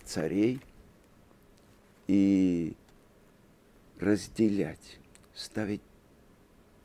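An older man speaks calmly and expressively into a close microphone, in short phrases with pauses.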